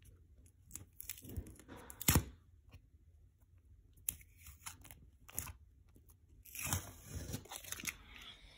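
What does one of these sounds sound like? Painter's tape peels off a wall with a crackling rip.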